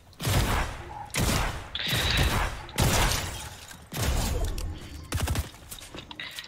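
Loud gunshots blast in quick bursts.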